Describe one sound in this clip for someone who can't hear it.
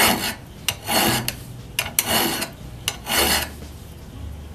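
A chisel scrapes and shaves wood in short strokes.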